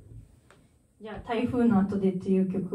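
A young woman sings into a microphone, close and clear.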